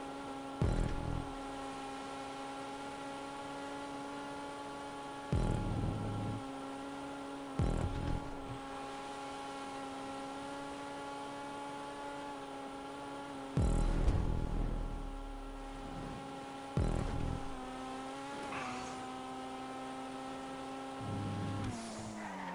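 A car engine hums steadily at high revs.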